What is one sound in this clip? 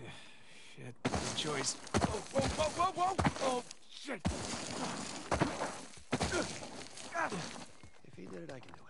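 Loose gravel scrapes and rattles underfoot.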